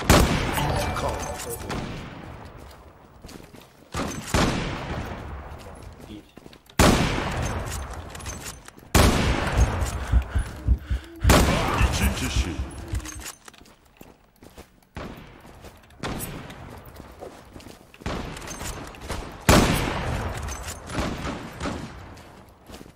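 A sniper rifle fires loud single shots that echo and slowly fade.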